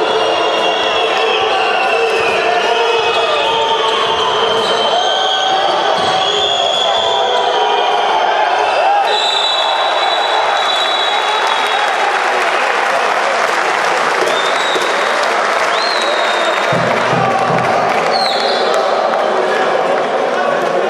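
A crowd in a large echoing arena cheers and chatters.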